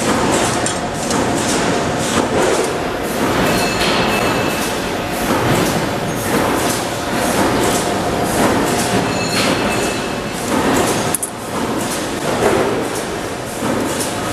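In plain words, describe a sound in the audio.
An electric welding arc crackles and buzzes in short bursts.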